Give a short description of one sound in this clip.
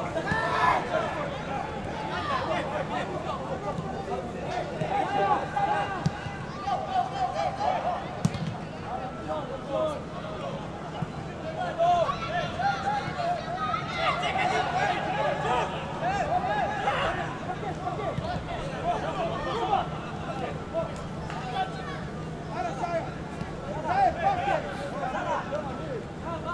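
Spectators chatter and murmur in an open stadium.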